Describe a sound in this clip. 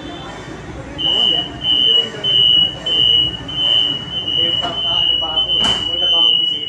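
A train's door warning chime beeps in rapid pulses.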